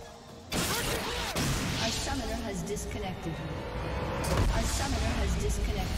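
Game sound effects clash and whoosh.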